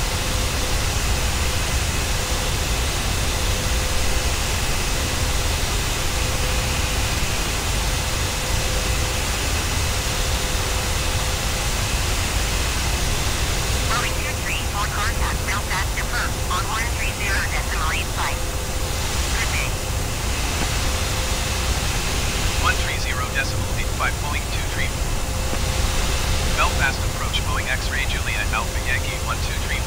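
The jet engines of a twin-engine airliner roar steadily in cruise.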